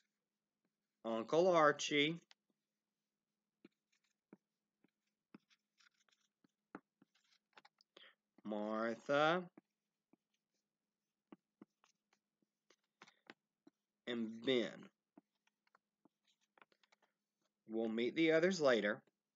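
A man speaks calmly and close up, in short bursts with long pauses.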